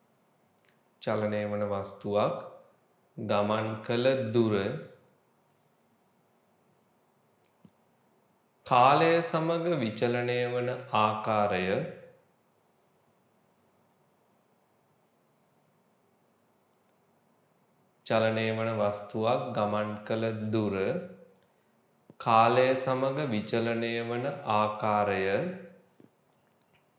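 A man speaks calmly and clearly into a close microphone, pausing between phrases.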